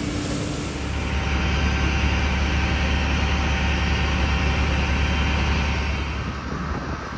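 A fire engine's motor idles with a steady low rumble.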